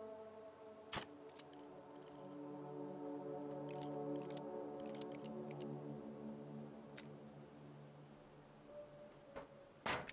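A revolver's cylinder clicks as it is handled.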